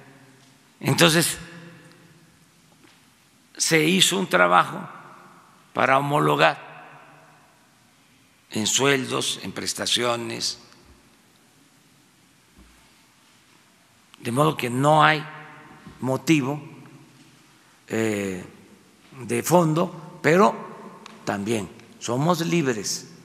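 An elderly man speaks calmly into a microphone, in phrases with pauses, in a large echoing hall.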